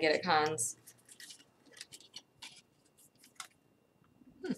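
Scissors snip thread softly.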